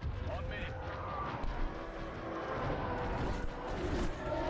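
Laser blasts zap rapidly in a space battle.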